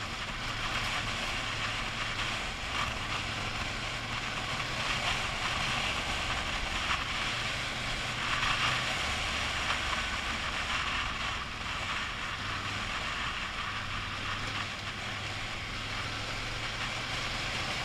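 Wind rushes loudly past a helmet.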